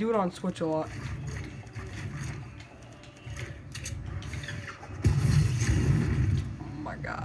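Video game sound effects play through speakers.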